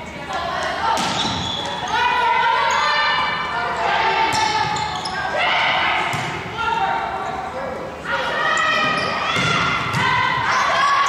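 A volleyball is struck with sharp slaps in an echoing gym.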